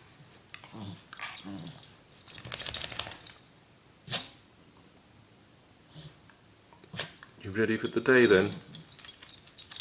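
A dog rustles and scrabbles in a soft bed.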